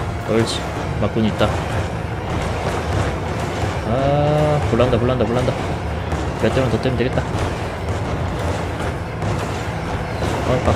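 A deep engine roar drones steadily.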